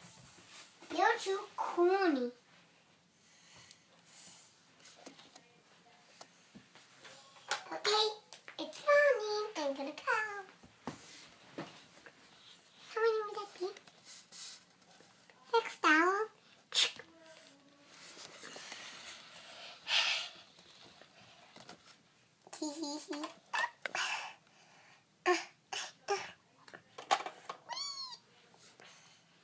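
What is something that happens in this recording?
A young girl talks in a high, lively voice close by.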